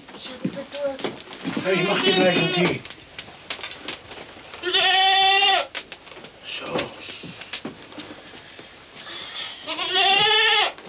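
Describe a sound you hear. Wooden objects knock and rattle as a man rummages through a chest.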